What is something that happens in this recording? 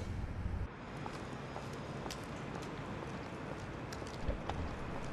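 High heels click on pavement outdoors.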